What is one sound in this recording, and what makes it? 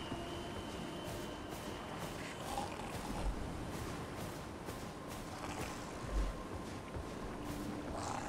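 Footsteps rustle through grass.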